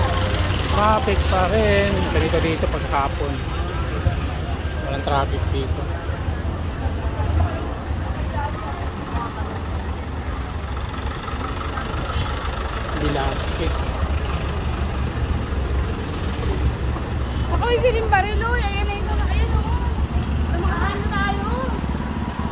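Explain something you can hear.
Engines rumble low on a street.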